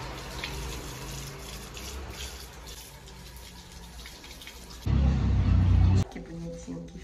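Water runs from a tap and splashes onto hair.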